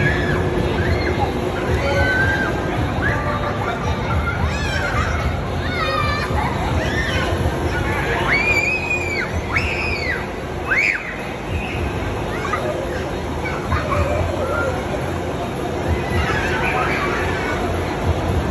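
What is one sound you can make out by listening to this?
Children squeal and shout excitedly nearby.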